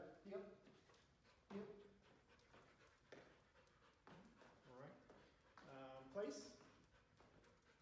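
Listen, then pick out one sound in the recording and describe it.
A dog's paws patter on a hard floor.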